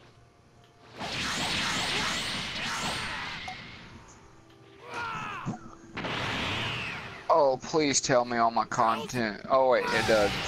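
Energy blasts whoosh and roar.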